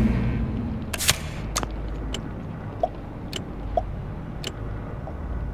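Short game interface clicks sound as menus change.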